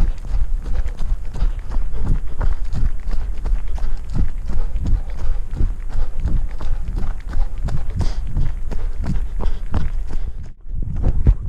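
Footsteps thud quickly on a dirt trail.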